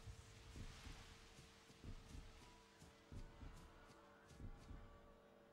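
Heavy footsteps thud at a steady running pace.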